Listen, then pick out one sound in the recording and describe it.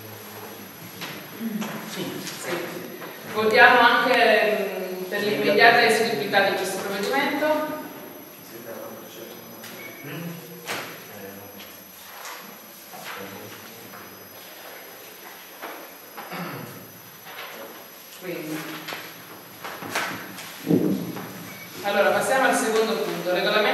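A woman speaks into a microphone with animation, her voice carried through a loudspeaker.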